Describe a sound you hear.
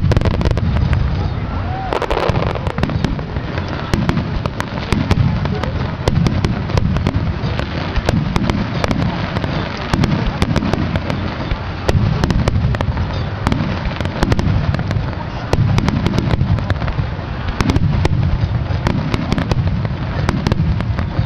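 Distant fireworks in a rapid barrage boom and thud.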